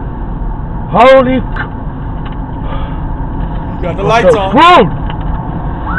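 A man speaks in short bursts inside a car.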